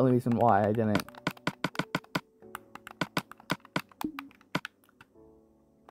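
Soft game menu clicks tick quickly, one after another.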